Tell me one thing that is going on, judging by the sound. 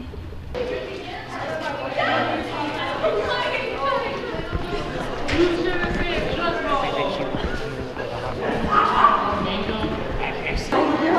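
A young woman talks with animation, close by in an echoing hallway.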